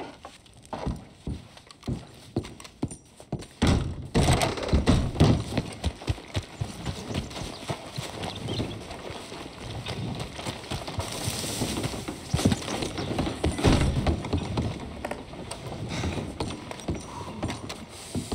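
Boots thud on a wooden floor.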